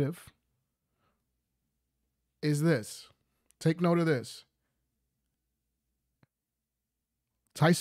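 A young man speaks with animation, close to a microphone, in short bursts.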